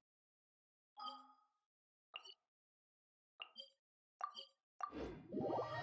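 Soft interface clicks tap several times.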